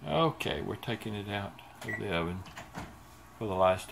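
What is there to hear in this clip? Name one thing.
An oven door creaks open.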